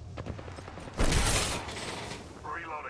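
A metal door slides open with a swish.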